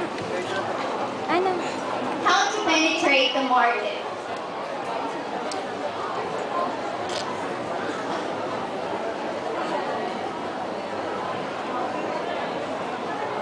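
A young woman speaks into a microphone over loudspeakers in a large echoing hall.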